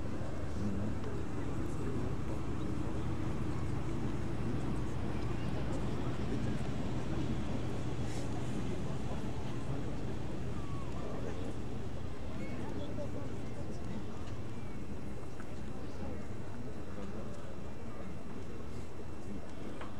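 Wind buffets loudly outdoors throughout.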